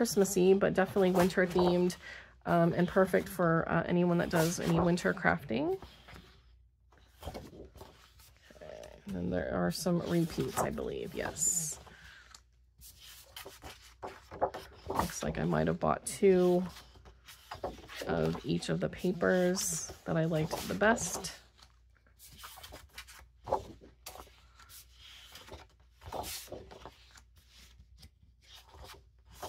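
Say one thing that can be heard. Sheets of paper rustle and flap as they are flipped through by hand.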